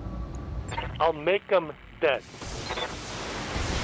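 A laser beam zaps.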